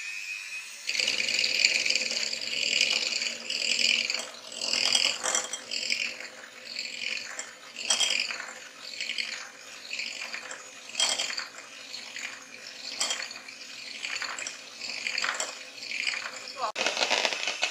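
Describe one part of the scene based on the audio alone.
An electric hand mixer whirs steadily as its beaters whisk a runny batter.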